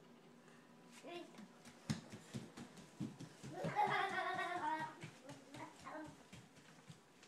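A toddler squeals and babbles excitedly nearby.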